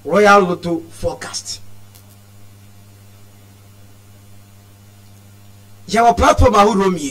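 A man speaks with animation into a microphone, in short bursts separated by a pause.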